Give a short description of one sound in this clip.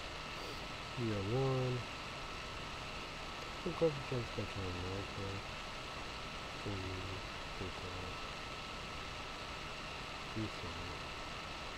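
A young man speaks slowly and quietly in short phrases, close to a microphone.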